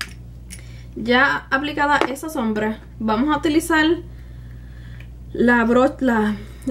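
A young woman talks calmly and closely into a microphone.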